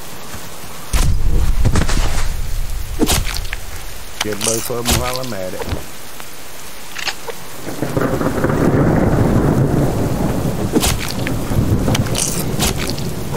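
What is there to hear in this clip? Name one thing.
A hatchet chops wetly into a carcass, again and again.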